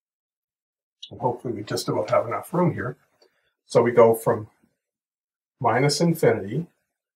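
A middle-aged man speaks calmly and clearly, close to a microphone.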